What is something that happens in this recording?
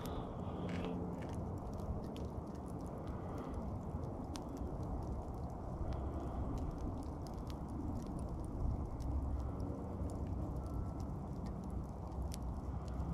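Glowing embers crackle and pop in a campfire.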